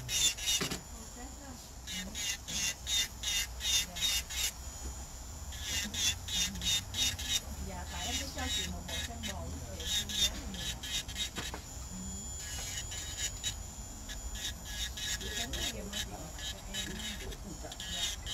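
An electric nail drill grinds against a fingernail in short, rapid bursts.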